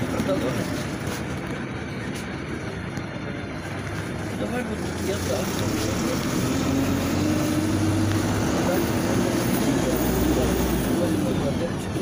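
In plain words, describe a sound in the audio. A bus rumbles and rattles over the road.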